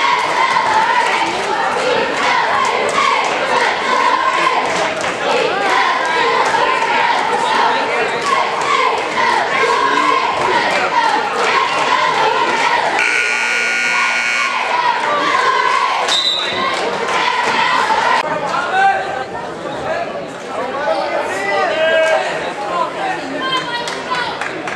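A large crowd cheers and chatters in an echoing gym.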